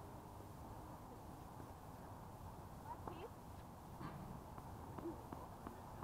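A tennis ball is struck with a racket and bounces on the court.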